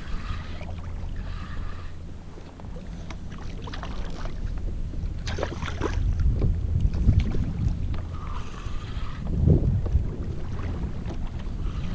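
Wind blusters steadily outdoors over open water.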